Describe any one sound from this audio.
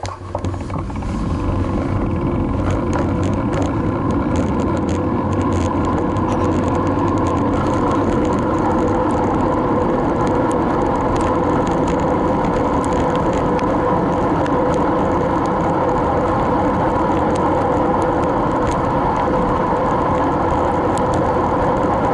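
Wind rushes past loudly.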